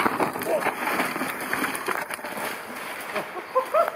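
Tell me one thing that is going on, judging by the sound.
A bicycle crashes into rustling bushes.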